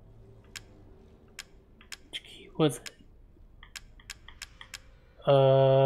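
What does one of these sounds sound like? Short soft clicks tick as a menu selection moves up and down.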